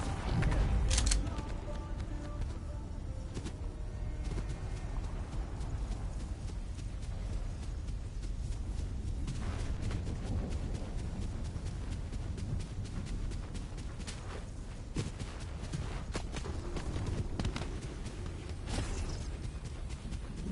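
Footsteps run quickly through grass and over dirt.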